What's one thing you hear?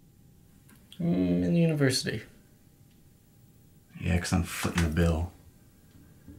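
A man with a low voice speaks in reply.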